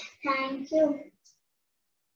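A young girl speaks clearly and with animation, close by.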